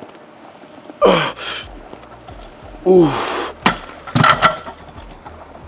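A man grunts and exhales hard with effort.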